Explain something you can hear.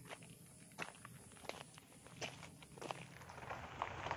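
Footsteps crunch on loose gravel close by.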